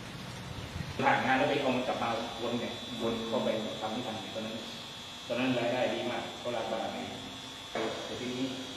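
A middle-aged man speaks calmly close to a microphone.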